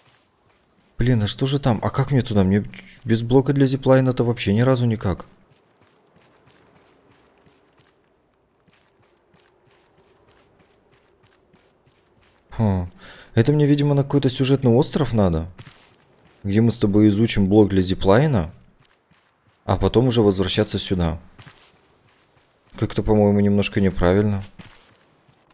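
A young man talks with animation close to a microphone, in bursts with pauses.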